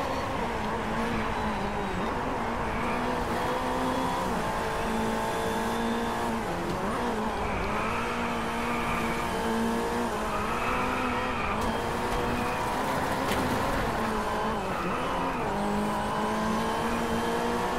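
An open-wheel racing car engine screams at high revs, dipping briefly as it slows for corners.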